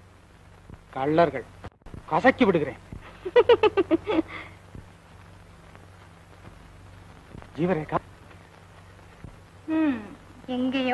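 A young woman calls out loudly in short, rising bursts.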